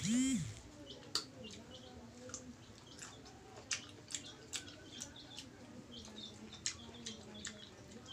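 A man crunches and chews food.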